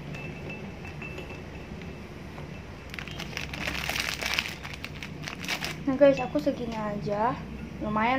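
Cookies clink into a glass jar.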